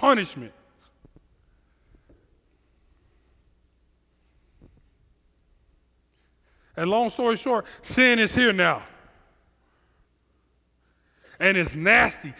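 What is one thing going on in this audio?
A man speaks with animation into a headset microphone, in bursts with long pauses.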